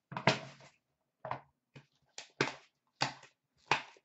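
A plastic case is set down on a glass shelf with a light knock.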